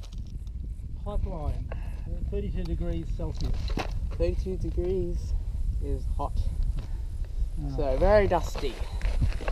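A boy talks with animation close to a helmet microphone.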